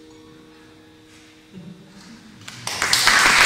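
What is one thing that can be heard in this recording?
An acoustic guitar chord rings out softly and fades.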